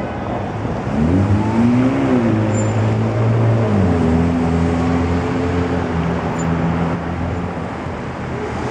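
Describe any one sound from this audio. Engines hum and rev as vehicles pull away.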